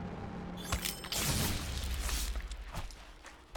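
A lightning bolt cracks and rumbles.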